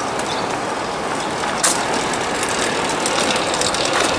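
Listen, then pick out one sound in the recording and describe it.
A bicycle rolls past close by.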